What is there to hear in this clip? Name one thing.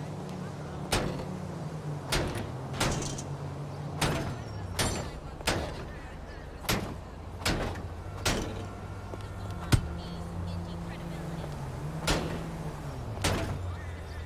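A baseball bat bangs against a car body.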